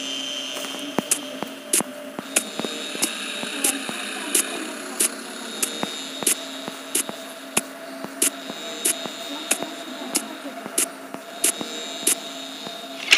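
Footsteps walk steadily at an even pace.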